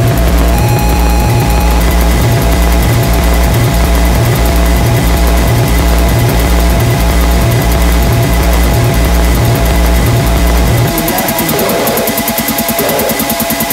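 A drum machine plays a steady, thumping electronic beat with a deep bass pulse.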